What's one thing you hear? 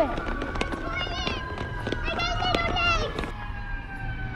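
Footsteps tap quickly along a pavement.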